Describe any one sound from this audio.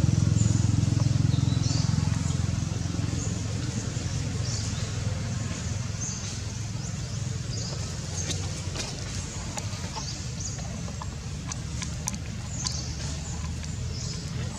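Dry leaves rustle as monkeys move across the ground.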